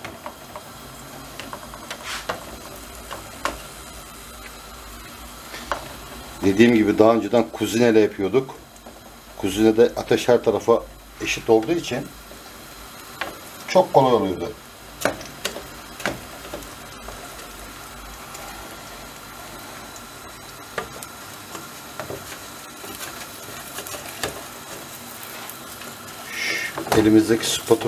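A wooden spatula pats and presses pastry in a metal pan.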